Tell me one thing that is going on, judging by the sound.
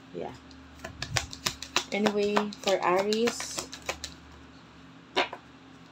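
Playing cards riffle and flap as they are shuffled by hand.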